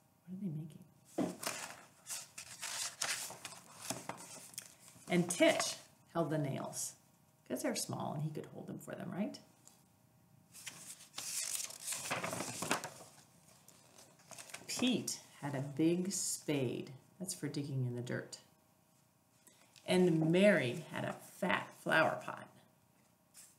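A woman reads aloud calmly and clearly, close by.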